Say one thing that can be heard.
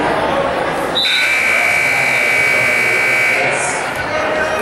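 A referee blows a long whistle.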